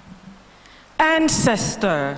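A girl begins speaking into a microphone.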